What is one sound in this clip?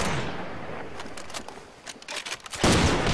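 A rifle bolt clicks as it is reloaded.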